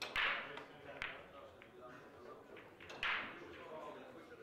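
Billiard balls clack together and roll into a pocket.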